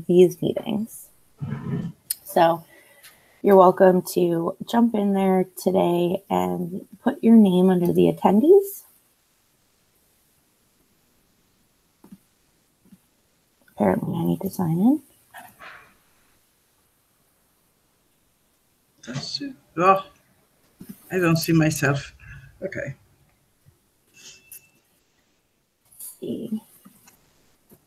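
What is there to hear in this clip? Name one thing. A woman speaks calmly over an online call, pausing now and then.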